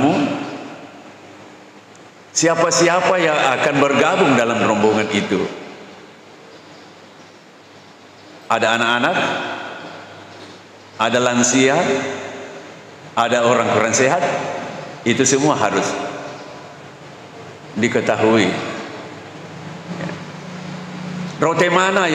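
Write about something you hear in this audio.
An elderly man speaks calmly into a microphone in an echoing hall, pausing between phrases.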